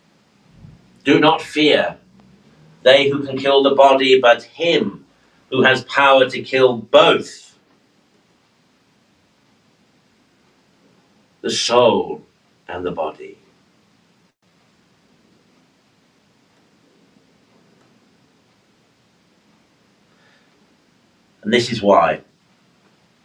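A middle-aged man speaks calmly and slowly into a nearby microphone, with long pauses.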